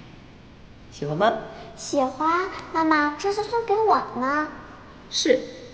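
A young girl speaks brightly up close.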